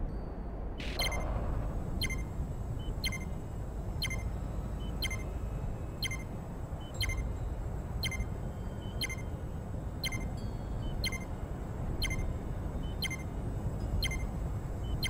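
A countdown beeps sharply once every second.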